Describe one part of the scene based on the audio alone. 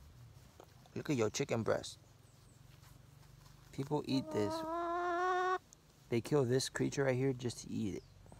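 A chicken squawks and clucks close by.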